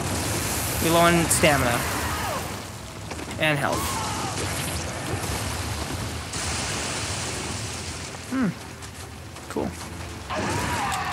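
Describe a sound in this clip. Young men talk and react with excitement close to a microphone.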